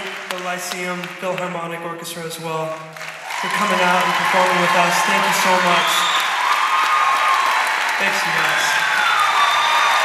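A man sings into a microphone, heard through loudspeakers in a large hall.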